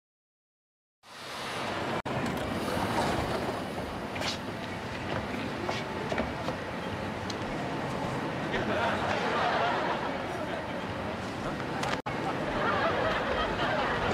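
A subway train rumbles and hums.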